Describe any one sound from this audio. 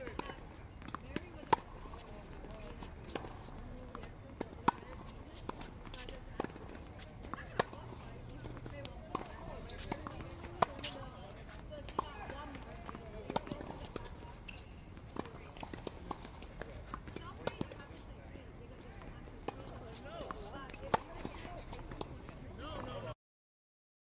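Tennis balls are struck sharply with rackets, back and forth.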